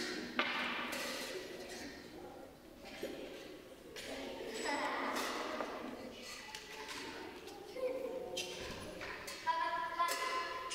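Metal and wooden instruments clatter and ring in a large echoing hall.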